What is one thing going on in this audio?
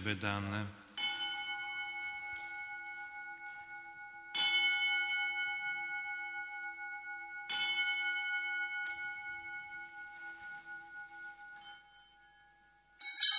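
A bell rings and its tone lingers.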